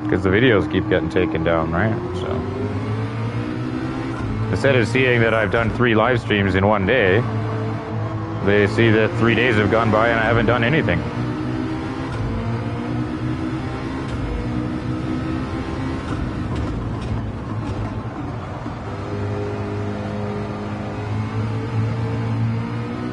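A racing car engine roars steadily, its pitch climbing and dropping with each gear change.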